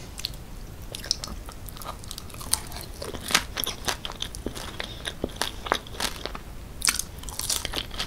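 A young woman chews soft food wetly and close to a microphone.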